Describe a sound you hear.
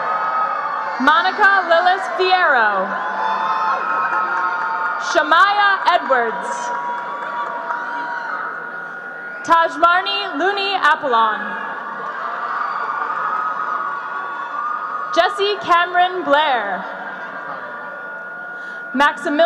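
A woman announces through a loudspeaker in a large echoing hall, in short bursts.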